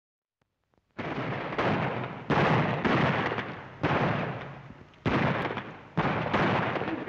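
Rifle shots ring out one after another.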